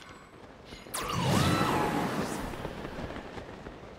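A gust of wind rushes upward with a loud whoosh.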